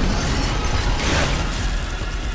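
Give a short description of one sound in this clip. A gun fires a loud, sharp blast.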